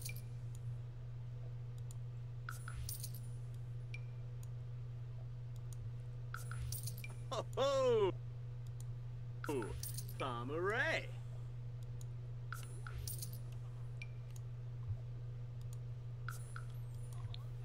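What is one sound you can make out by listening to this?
Soft interface clicks sound as menu prompts pop up and close.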